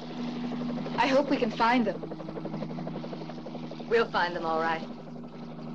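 A young woman speaks briefly over the engine noise.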